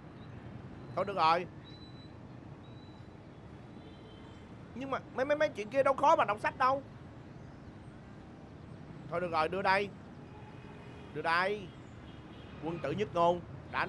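A young man talks animatedly close by.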